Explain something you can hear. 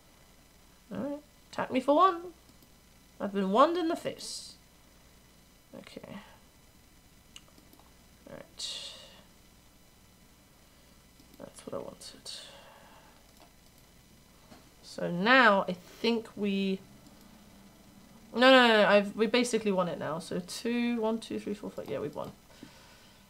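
A young woman talks calmly and casually into a nearby microphone, in short bursts.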